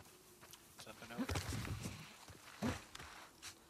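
A body scrapes and thumps while climbing over a wooden fence.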